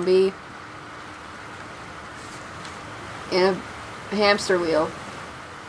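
Water rushes and splashes steadily over rocks.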